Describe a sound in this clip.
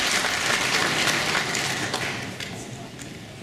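An audience applauds in a large hall, the clapping fading away.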